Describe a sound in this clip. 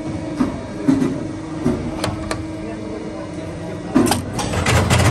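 Metal parts click and clatter as they are fitted into a machine.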